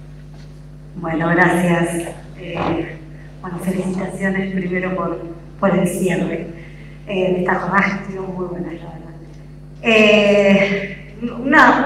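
A woman speaks calmly over an online call, heard through loudspeakers in a large room.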